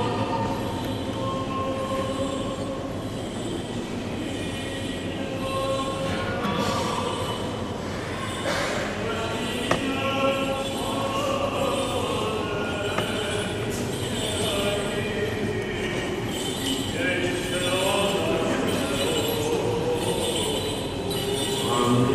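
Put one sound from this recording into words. A men's choir chants slowly in a large echoing hall.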